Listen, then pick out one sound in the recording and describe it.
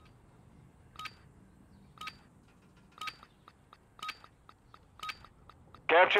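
A countdown timer beeps once each second.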